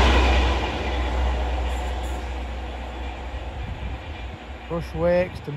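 A diesel locomotive rumbles past.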